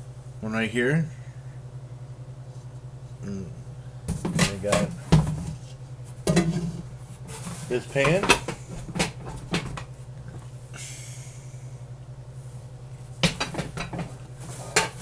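A middle-aged man talks calmly close to the microphone.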